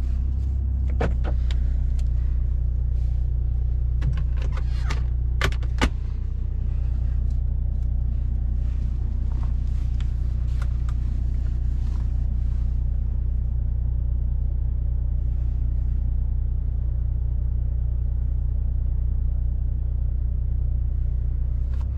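A car drones low and steady at speed, heard from inside the cabin.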